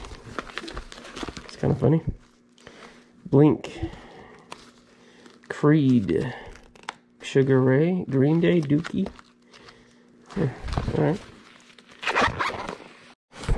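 A zippered case thumps and rustles.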